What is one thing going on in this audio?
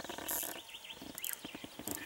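A man blows short, chirping whistles on a small bird call.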